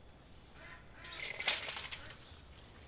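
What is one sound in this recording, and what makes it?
A plant stalk snaps with a sharp crack.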